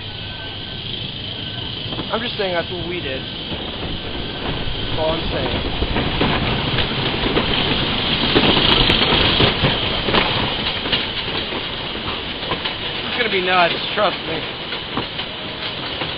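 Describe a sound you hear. A roller coaster car rattles and clatters along wooden tracks.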